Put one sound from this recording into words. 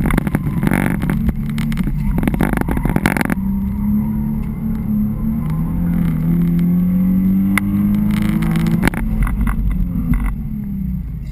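A sports car engine revs hard and rises in pitch through the gears, heard from inside the car.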